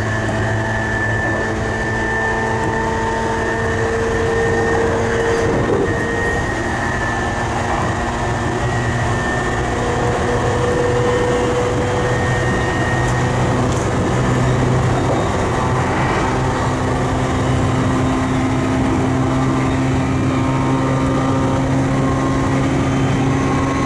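Traction motors of an electric commuter train whine at high speed.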